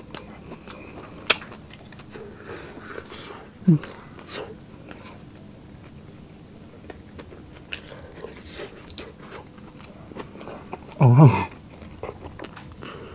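A man chews food loudly and wetly, close to a microphone.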